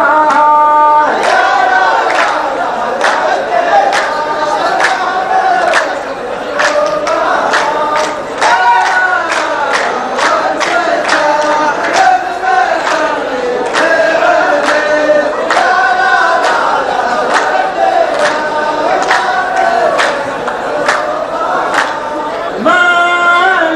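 A group of men clap in a steady rhythm.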